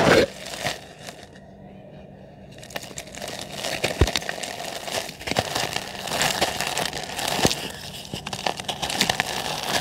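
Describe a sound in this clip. Hands crumble dry cement chunks, which crackle and crunch.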